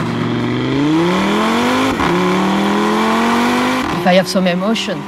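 A car engine revs up loudly through an exhaust.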